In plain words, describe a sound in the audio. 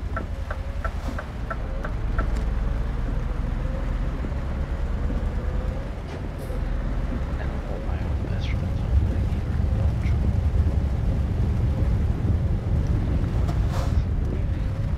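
A diesel truck engine drones at cruising speed.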